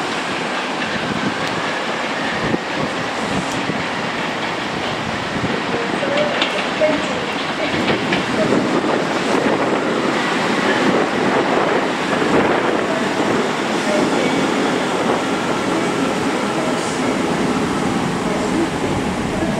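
A train rumbles into the station and slows to a stop.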